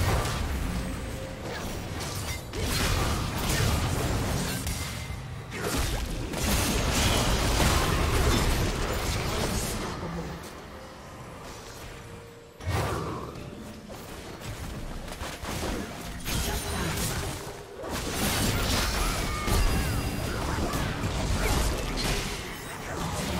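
Video game combat effects clash with sword slashes and spell bursts.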